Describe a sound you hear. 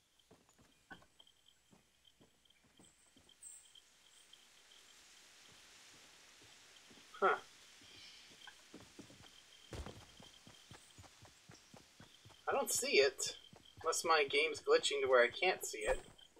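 Footsteps patter quickly on wood and grass.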